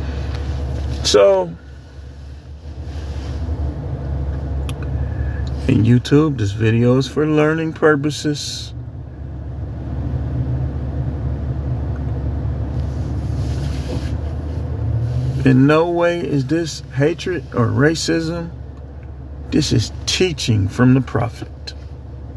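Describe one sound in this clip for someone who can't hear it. A middle-aged man talks calmly close to a phone microphone.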